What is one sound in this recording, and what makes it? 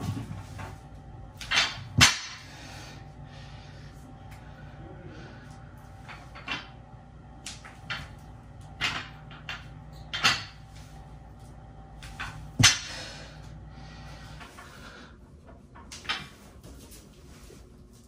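A man breathes hard with effort.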